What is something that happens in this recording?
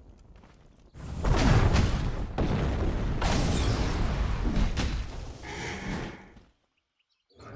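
Weapons clash and spells burst in a noisy fight.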